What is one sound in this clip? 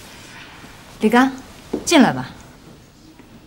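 A woman says a few words.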